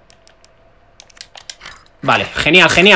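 A key turns in a lock with a few metallic clicks.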